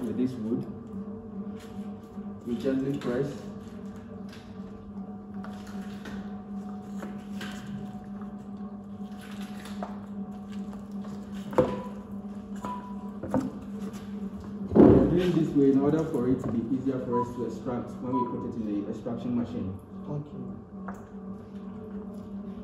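A wooden pole stirs and squelches through a thick, wet mixture in a bucket.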